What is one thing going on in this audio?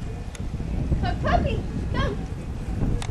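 Puppies yip and whine close by.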